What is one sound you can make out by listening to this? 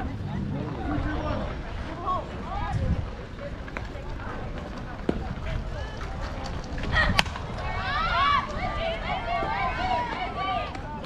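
A crowd of spectators and players shouts and cheers outdoors.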